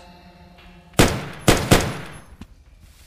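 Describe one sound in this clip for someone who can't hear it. Pistol shots ring out in quick succession, echoing in a stone corridor.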